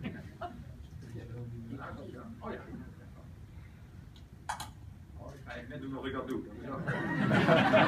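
People in an audience murmur quietly.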